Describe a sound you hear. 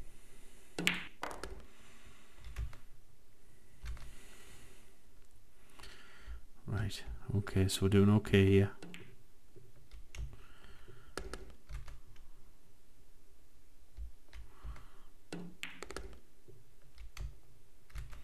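Pool balls clack against each other.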